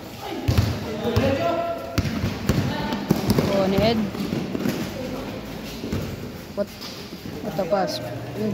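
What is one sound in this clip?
Young men shout and call out to each other during play, echoing under a roof.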